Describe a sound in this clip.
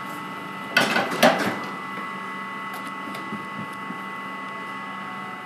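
A metal scraper scrapes and knocks against an oven tray.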